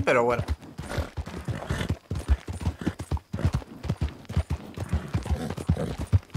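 Horse hooves thud steadily on a dirt path.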